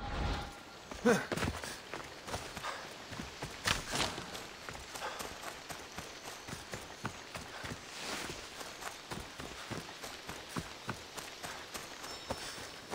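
Footsteps run quickly over dry leaves and grass.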